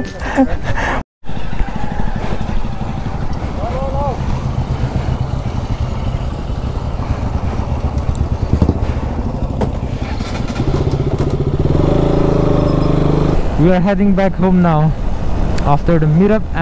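A motorcycle engine rumbles close by.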